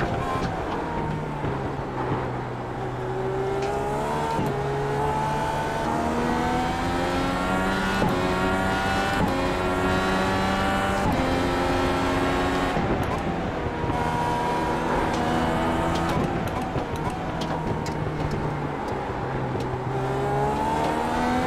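A racing car engine roars and whines, rising in pitch through the gears and dropping as it shifts down.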